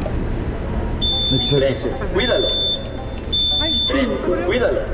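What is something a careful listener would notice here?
A ticket gate beeps in short, sharp tones several times.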